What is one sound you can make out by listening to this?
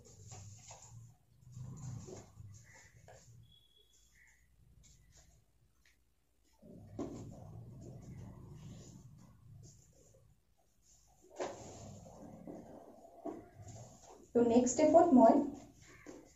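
Paper rustles and creases as it is folded by hand.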